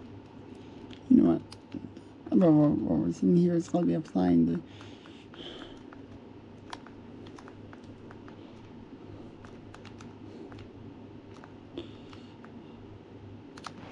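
Small plastic buttons click softly under a thumb.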